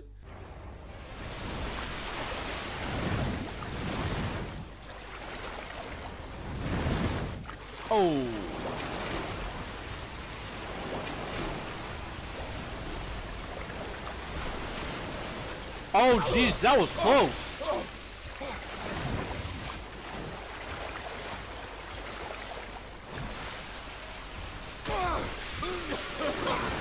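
Water sloshes and splashes as a swimmer moves through it.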